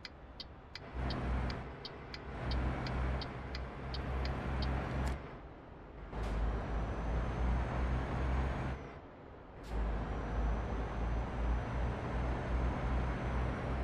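A truck engine drones, dropping off briefly between gear changes.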